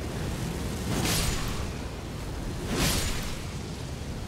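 A sword swishes and strikes in quick blows.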